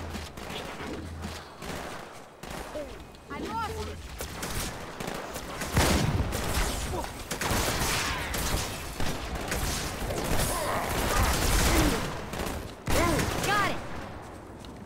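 Energy weapons fire in rapid, crackling bursts.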